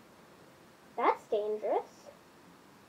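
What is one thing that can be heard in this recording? A young girl speaks briefly in a high voice, close by.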